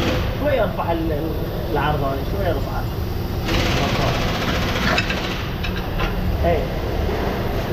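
Metal tools clink and scrape against a car's underside.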